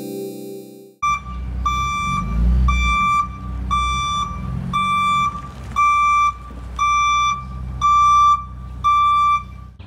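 A van's reversing alarm beeps at an even pace.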